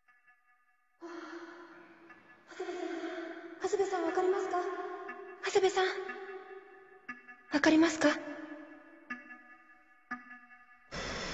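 A young woman calls out urgently to someone close by.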